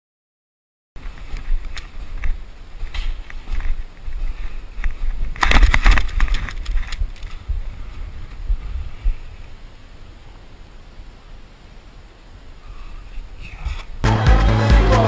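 Wind rushes loudly past a fast-moving snowboarder.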